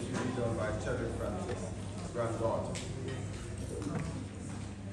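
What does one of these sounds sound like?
A man speaks steadily through a microphone and loudspeakers in an echoing hall.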